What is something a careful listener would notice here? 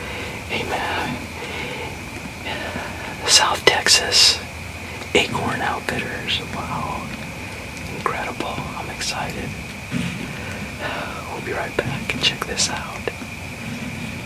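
A man whispers close to the microphone.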